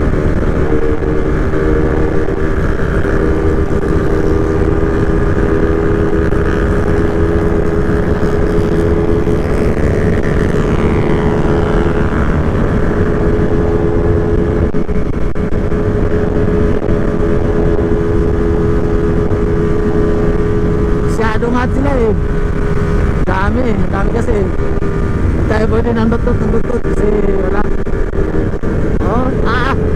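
Wind rushes and buffets loudly past the rider.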